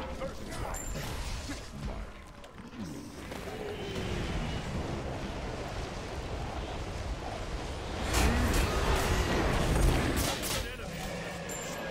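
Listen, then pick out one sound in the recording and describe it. Magic spells blast and crackle in a fight.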